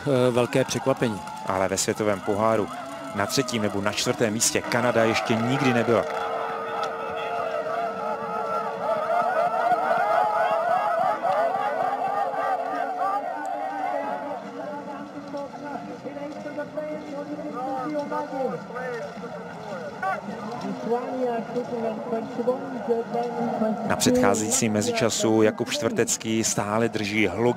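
Spectators clap and ring cowbells.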